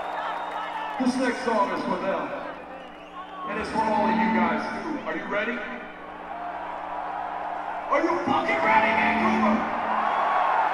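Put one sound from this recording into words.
A man shouts through loudspeakers in a large echoing arena.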